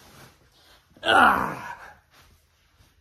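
A young man shouts loudly close by.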